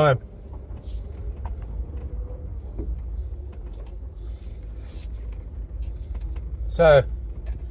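A middle-aged man speaks briefly, close by, inside the car.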